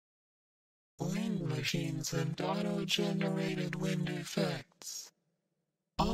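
A woman sings loudly in a large echoing hall.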